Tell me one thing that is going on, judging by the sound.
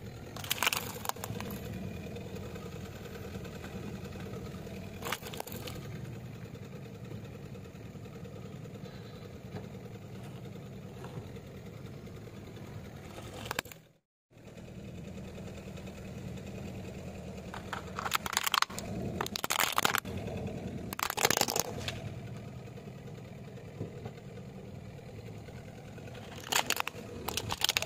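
A car idles nearby with a low rumble.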